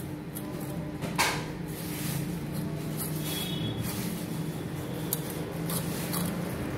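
A dog laps and eats noisily from a metal bowl.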